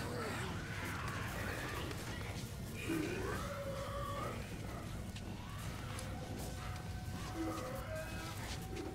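Footsteps tread on a metal floor.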